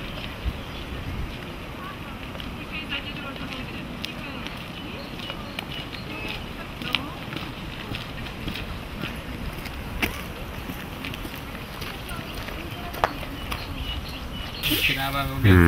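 Footsteps crunch on a gravel path outdoors.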